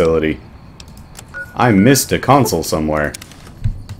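A game menu gives a short beep as an option is picked.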